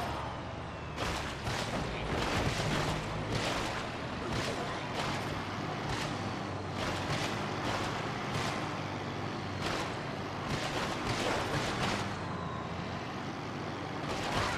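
Blows strike bodies in quick, repeated thuds and smacks.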